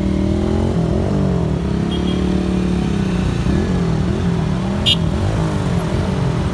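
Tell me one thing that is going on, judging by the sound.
A nearby motorcycle engine rises and falls in pitch as it rides.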